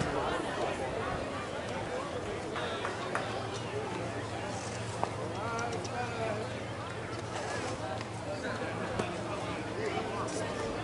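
Several men talk and call out outdoors at a distance.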